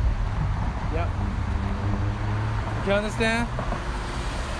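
A young man speaks briefly close by.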